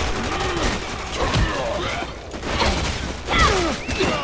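Heavy blows thud during a scuffle.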